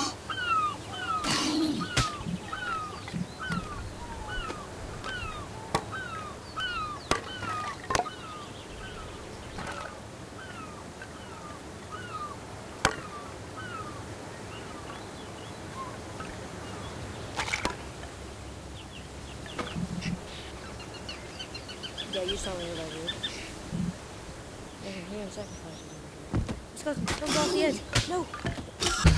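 Waves wash against the shore below.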